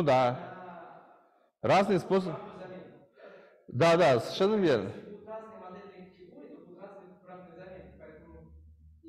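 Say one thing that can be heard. A man lectures through a microphone in a reverberant room.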